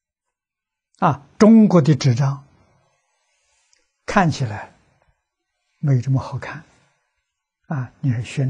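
An elderly man speaks calmly into a close microphone, in short phrases with pauses.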